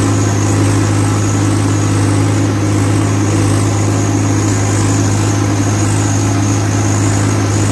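A tractor's diesel engine rumbles loudly and steadily up close.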